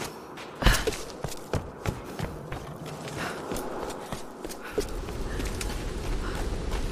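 Footsteps crunch on a rocky path.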